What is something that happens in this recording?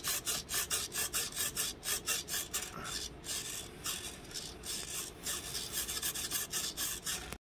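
A small servo motor whirs in quick, repeated bursts.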